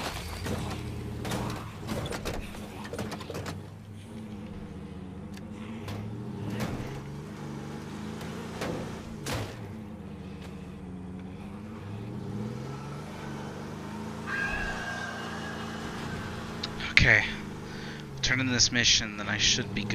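A van engine hums and revs as it drives over rough ground.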